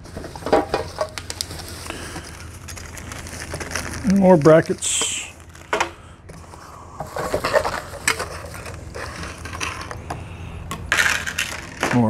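Bubble wrap crinkles and rustles as it is handled.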